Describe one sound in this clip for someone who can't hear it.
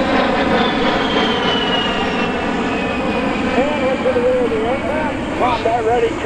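A jet engine roars loudly overhead with a steady whine.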